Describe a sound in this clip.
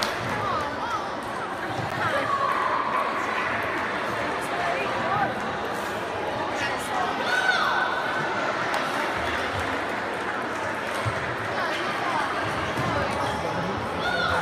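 Table tennis balls click on tables and bats.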